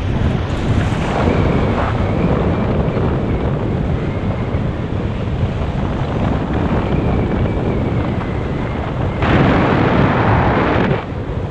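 Strong wind rushes and buffets past high in the open air.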